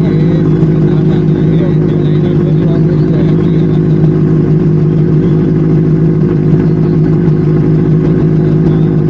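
A motor scooter engine hums steadily up close.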